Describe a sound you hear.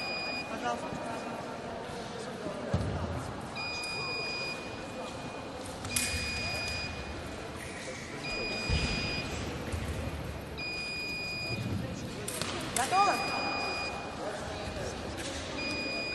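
A scoring machine beeps in short repeated tones.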